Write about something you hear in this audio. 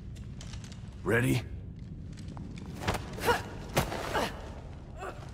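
A woman grunts with effort.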